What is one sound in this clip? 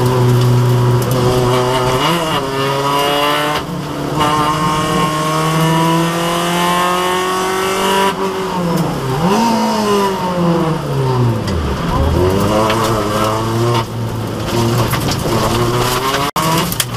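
A rally car engine roars loudly from inside the cabin, revving up and dropping as gears change.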